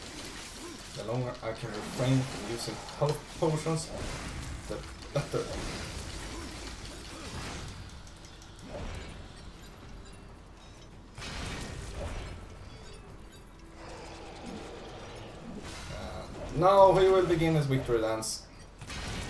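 A huge monster roars and growls deeply.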